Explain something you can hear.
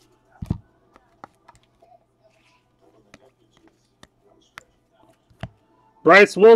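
Cards click and rustle softly as they are flipped through by hand.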